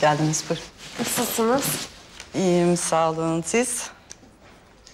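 A young woman answers calmly.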